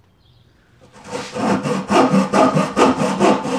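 A hand saw cuts through wood with quick, even strokes.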